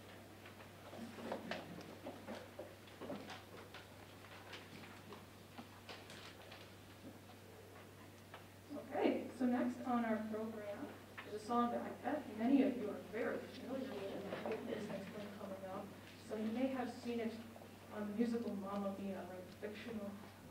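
A woman speaks through a microphone in a large room.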